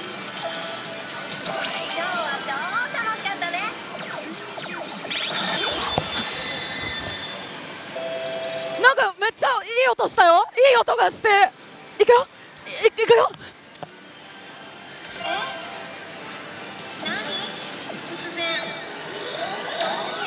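A slot machine plays bright electronic jingles and chimes.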